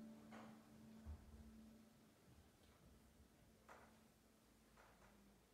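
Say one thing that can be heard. A saxophone plays long held notes.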